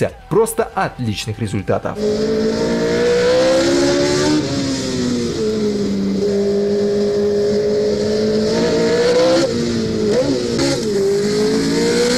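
A racing car engine roars loudly close by, rising and falling in pitch as it revs and changes gear.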